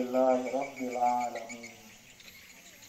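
A man reads out loud outdoors.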